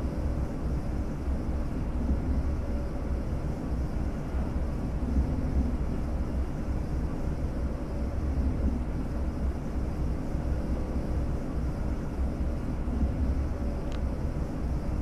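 A train rumbles steadily along the tracks with a deep, constant drone.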